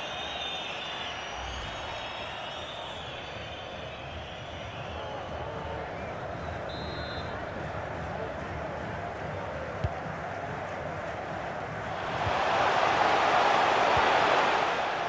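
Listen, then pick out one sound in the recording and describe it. A stadium crowd roars steadily and swells louder near the end.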